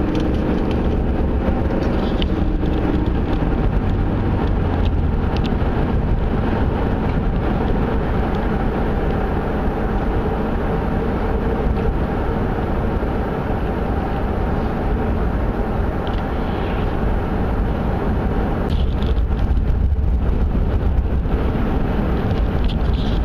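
A car engine hums steadily with tyres rumbling on the road.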